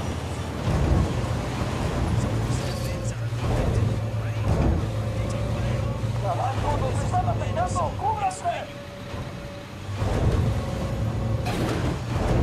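An armoured vehicle's engine rumbles steadily as it drives.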